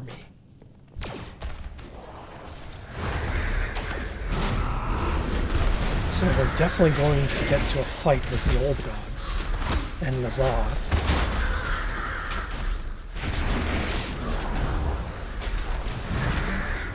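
Game combat sounds clash and thump loudly.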